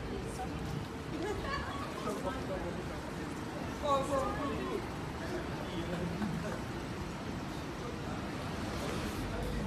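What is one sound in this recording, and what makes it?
Street traffic hums steadily outdoors.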